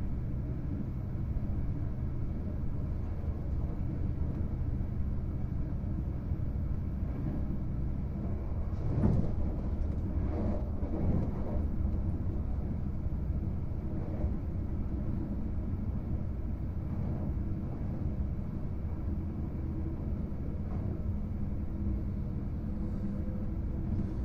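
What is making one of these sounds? A train rumbles steadily along the tracks, heard from inside a carriage.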